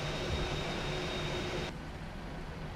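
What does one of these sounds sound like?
Jet engines whine loudly outside as an airliner taxis.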